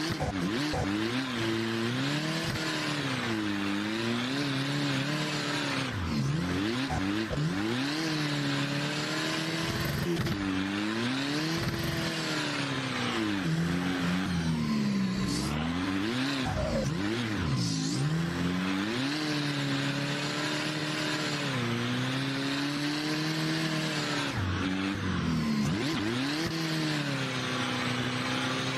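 Tyres squeal and screech on tarmac.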